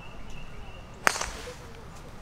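A golf club cracks sharply against a ball some distance away.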